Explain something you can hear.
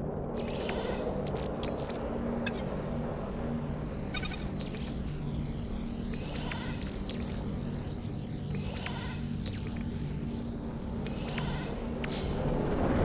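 Soft interface chimes and clicks sound as menu items are selected.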